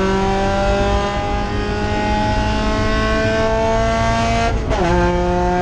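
A race car engine roars loudly inside the cabin, climbing steadily in pitch.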